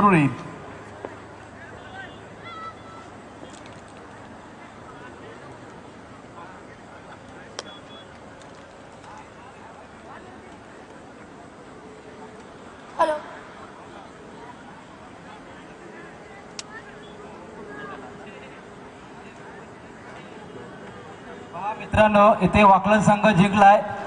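A large crowd murmurs and chatters in the open air.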